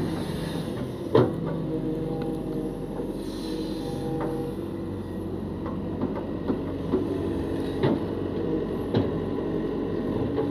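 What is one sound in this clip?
An excavator bucket scrapes and knocks against wet mud.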